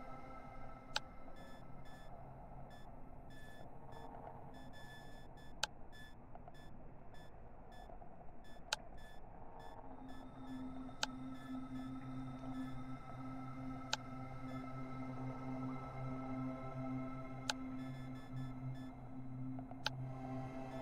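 Short sharp clicks sound now and then as menu items are selected.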